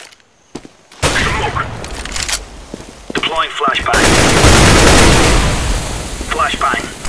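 A rifle fires loud, rapid shots close by.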